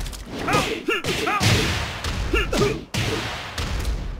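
Electric crackling bursts out with a hit.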